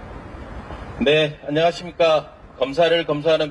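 A middle-aged man speaks loudly and forcefully into a microphone, amplified outdoors.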